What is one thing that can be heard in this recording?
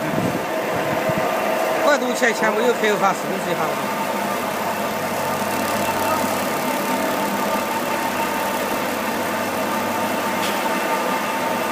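A small motor hums steadily.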